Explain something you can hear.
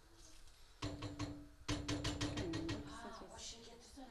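A wooden spoon stirs and scrapes in a metal pot.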